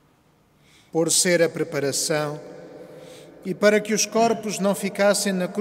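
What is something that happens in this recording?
A man sings through a microphone, echoing in a large hall.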